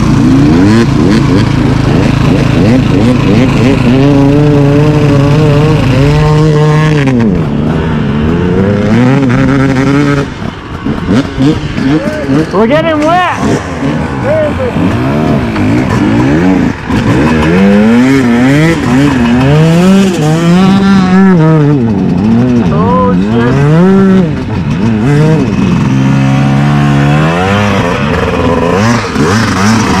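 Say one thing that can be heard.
A dirt bike engine idles and revs up and down close by.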